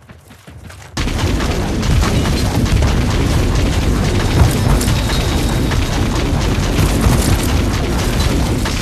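Magic blasts crackle and thud in a fierce fight.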